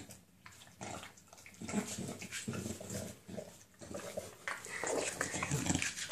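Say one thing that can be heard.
A dog's claws click and scrape on a wooden floor.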